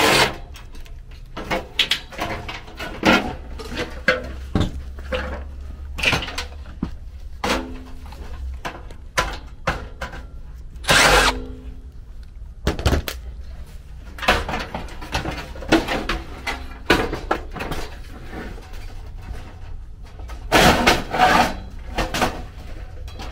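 Metal parts clank and knock as a blower housing is handled.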